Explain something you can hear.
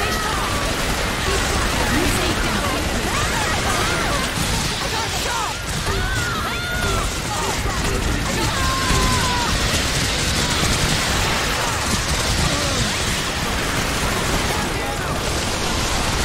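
Gunfire rattles rapidly and continuously.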